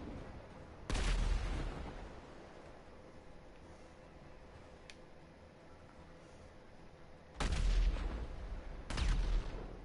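A rifle fires bursts of rapid gunshots that echo loudly.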